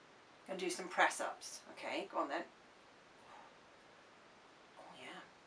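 A woman speaks calmly and playfully close by.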